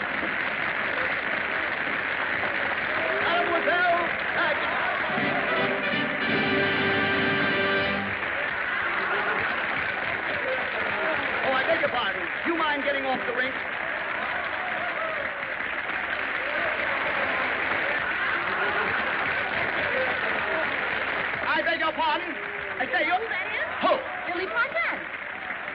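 A large crowd cheers and claps loudly.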